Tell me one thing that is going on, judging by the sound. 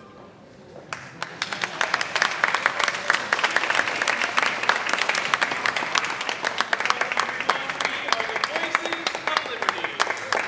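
A lively tune plays on a piano in a large echoing hall.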